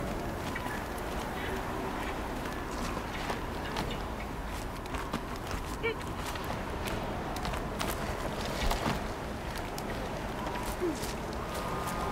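Hands and feet scrape and knock against rock during a climb.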